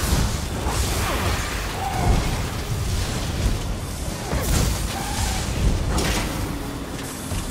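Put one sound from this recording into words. Magic spells crackle and blast during a fight.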